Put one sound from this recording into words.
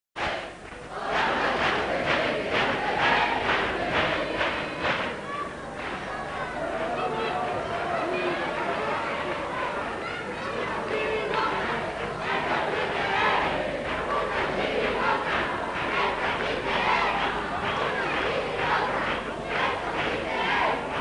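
A reed pipe plays a shrill, wavering tune.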